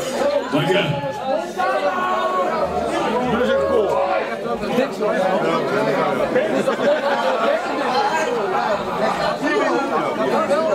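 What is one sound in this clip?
A rock band plays loudly, with distorted electric guitars.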